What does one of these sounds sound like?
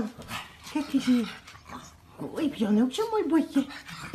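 A small dog snorts and sniffs close by.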